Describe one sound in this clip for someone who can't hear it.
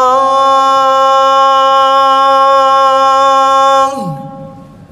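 A man chants loudly in a long held note through a microphone, echoing in a large hall.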